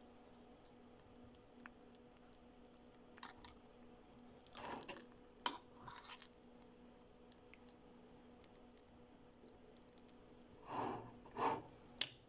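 A fork scrapes against a metal pot.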